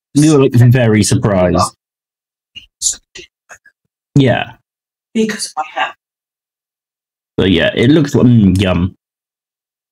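A young man talks with animation close to a microphone, in bursts with pauses.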